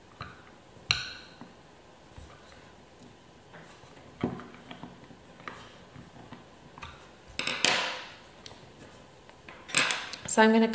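Light taps and clicks of small tools on a hard board.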